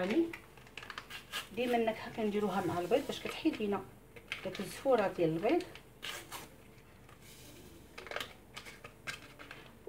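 A paper sachet rustles and tears open.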